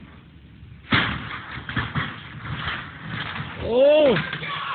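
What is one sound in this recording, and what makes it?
A man thuds onto a metal roof.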